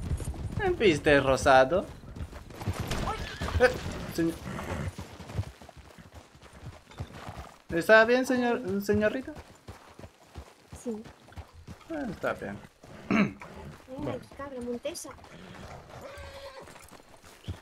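Horse hooves clop slowly on soft ground.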